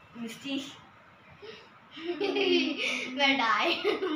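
A younger girl laughs close by.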